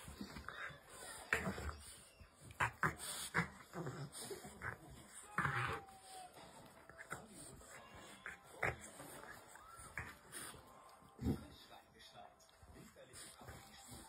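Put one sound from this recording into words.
A small dog growls and grunts playfully up close.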